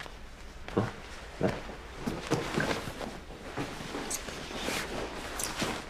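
A couch creaks and rustles as two people tumble onto it.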